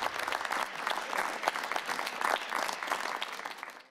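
A studio audience applauds.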